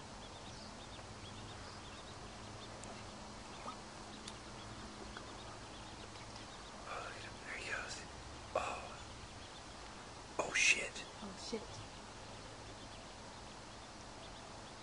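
Ducklings peep softly.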